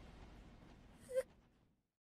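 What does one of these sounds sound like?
A young woman gasps a short questioning sound.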